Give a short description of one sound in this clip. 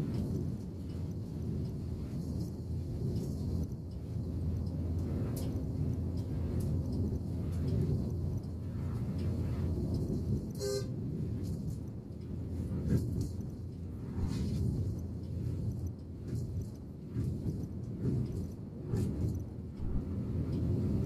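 Tyres hum on the road.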